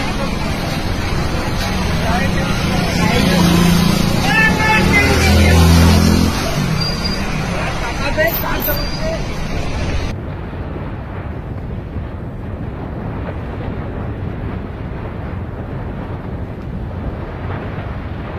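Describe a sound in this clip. A large fire roars steadily.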